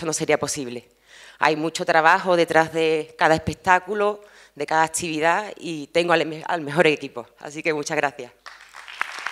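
A woman speaks with emotion into a microphone, heard through loudspeakers in a large hall.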